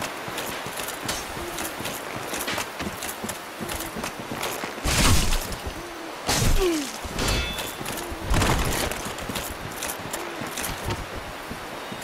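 Armoured footsteps crunch steadily over grass.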